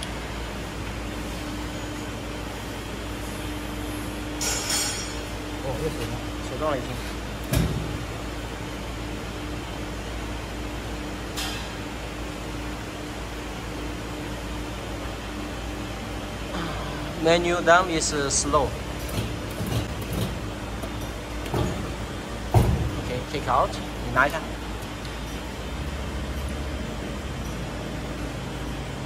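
A press machine hums steadily.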